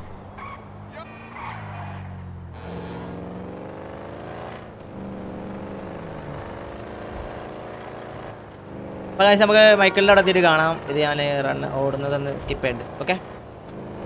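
A car engine hums and revs as the car drives along a road.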